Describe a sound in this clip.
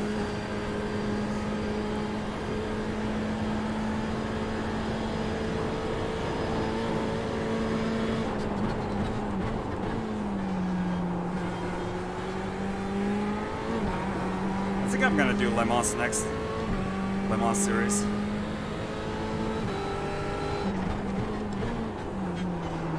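A race car engine drones steadily, its pitch dropping and rising with gear changes.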